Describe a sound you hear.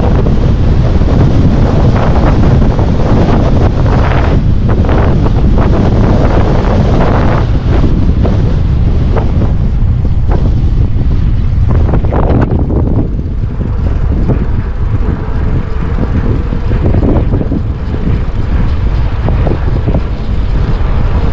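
Bicycle tyres roll and rattle over a rough paved path.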